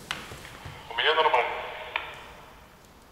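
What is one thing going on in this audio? A man speaks into a two-way radio.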